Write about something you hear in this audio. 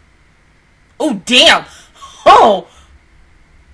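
A young woman laughs out loud close to a microphone.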